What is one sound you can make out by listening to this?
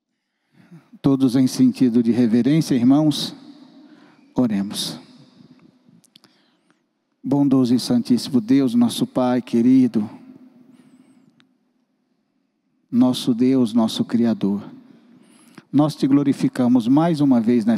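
A middle-aged man speaks with feeling into a microphone, heard through loudspeakers in a reverberant room.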